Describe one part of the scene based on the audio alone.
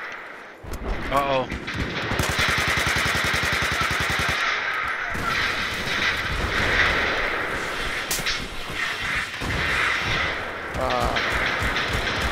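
A young man speaks casually into a headset microphone.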